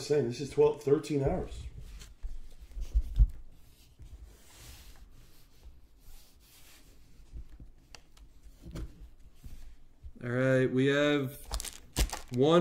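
Card packs rustle and tap as they are handled.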